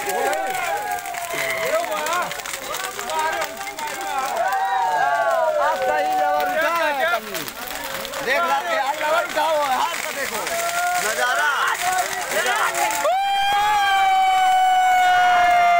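A large bonfire crackles and roars.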